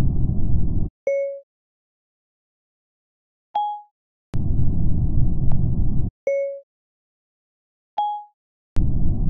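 A phone gives short electronic chimes, one lower and one higher.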